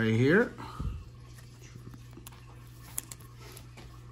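A trading card slides into a plastic sleeve with a soft rustle.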